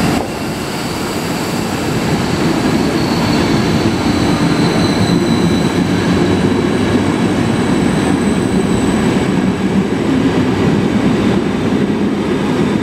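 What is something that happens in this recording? A passenger train rumbles past close by, its wheels clattering on the rails.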